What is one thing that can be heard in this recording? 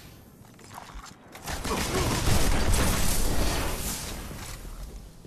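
Gunfire crackles and booms.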